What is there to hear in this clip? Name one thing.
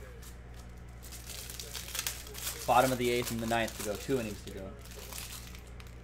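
Plastic wrap crinkles and rustles as a pack is torn open.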